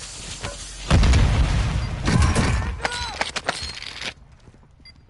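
A heavy door swings open.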